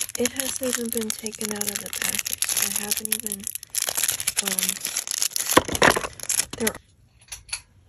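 Plastic packaging rustles and crinkles close by.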